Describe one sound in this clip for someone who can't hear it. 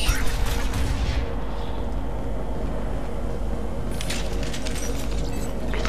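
Heavy boots step on a metal floor.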